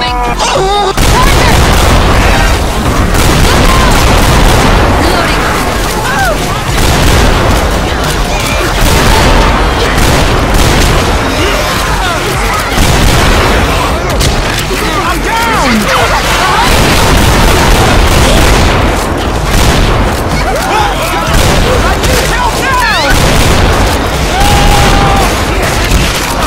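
A shotgun fires in quick bursts.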